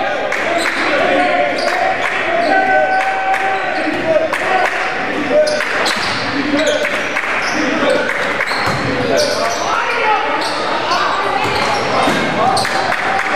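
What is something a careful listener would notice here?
Sneakers squeak sharply on a gym floor.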